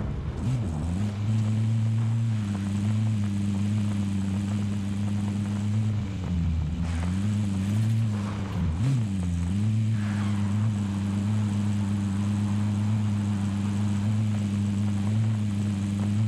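A vehicle engine drones steadily and shifts in pitch as it accelerates and slows.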